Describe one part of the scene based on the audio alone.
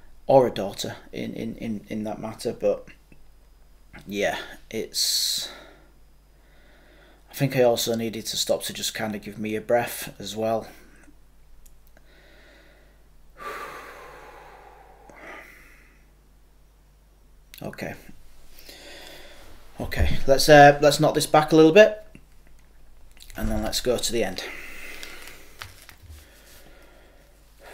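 A man talks calmly and close by, in bursts with pauses.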